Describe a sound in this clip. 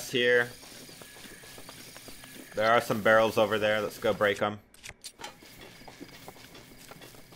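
Footsteps rustle through tall grass at a run.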